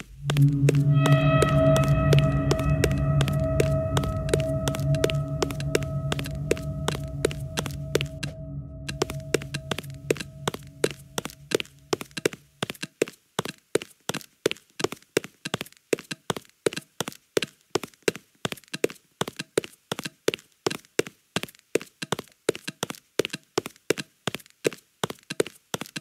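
Quick footsteps patter on a wooden floor.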